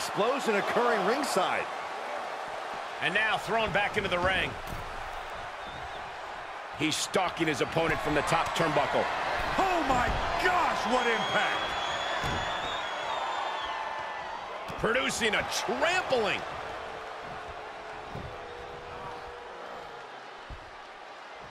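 Heavy body blows thud in a wrestling ring.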